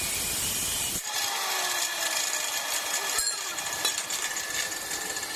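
A grinding wheel whirs steadily.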